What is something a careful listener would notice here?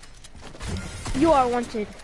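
A gun fires in quick shots.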